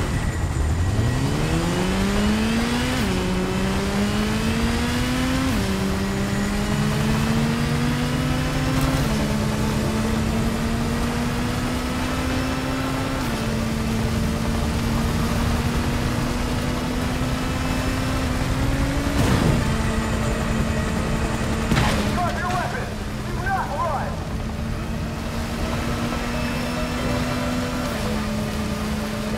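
A motorcycle's tyres hiss on a wet road.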